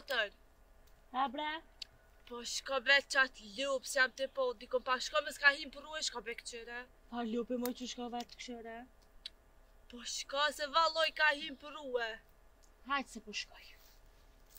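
Two young women talk calmly nearby.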